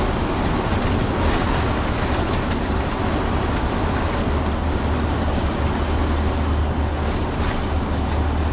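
Tyres roar on the road beneath a moving bus.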